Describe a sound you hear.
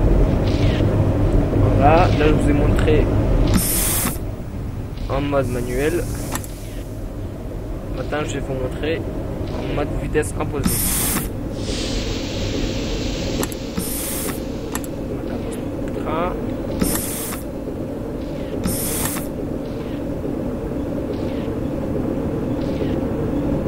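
A train's electric motor hums steadily while rolling along the tracks.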